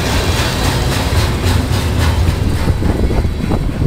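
A freight train rumbles past close by and fades away.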